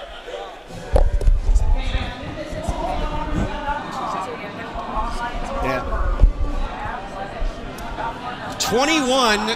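Young men chatter and shout on an open field.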